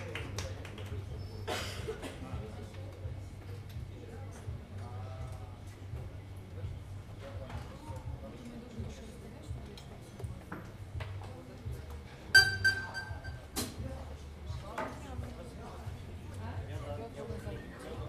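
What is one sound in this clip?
A piano plays soft, sparse notes.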